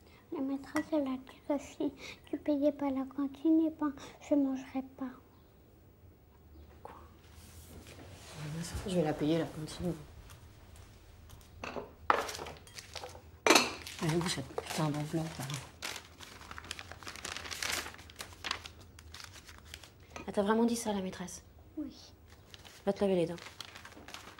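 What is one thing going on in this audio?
A young girl speaks quietly nearby.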